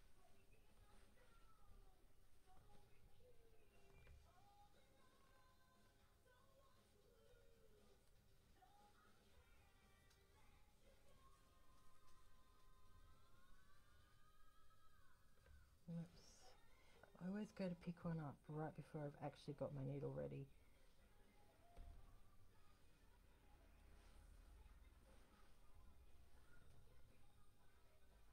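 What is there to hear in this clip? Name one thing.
Small beads click softly as fingers handle them.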